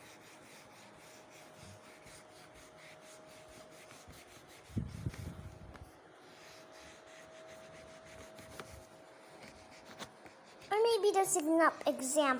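An eraser rubs softly across a whiteboard.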